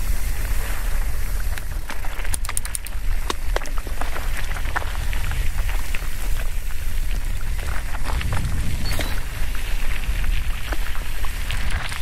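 Bike tyres crunch and rattle over a rocky dirt trail.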